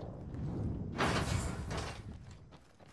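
A heavy metal door slides open with a whoosh.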